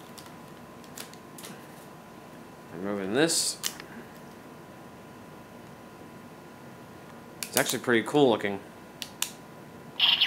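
A plastic toy piece clicks sharply.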